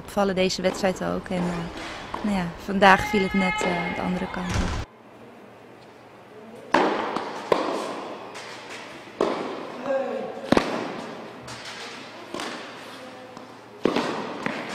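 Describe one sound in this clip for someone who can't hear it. A tennis racket strikes a ball with sharp pops in a large echoing hall.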